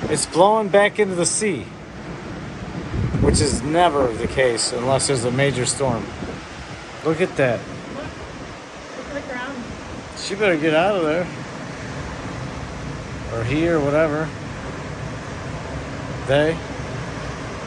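A man speaks close by, describing calmly with pauses.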